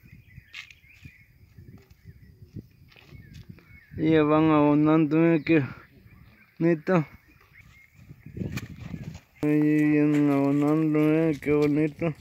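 Boots crunch on dry soil and twigs.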